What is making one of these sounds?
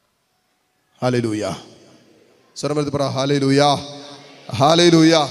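A man speaks with feeling into a microphone, heard through loudspeakers.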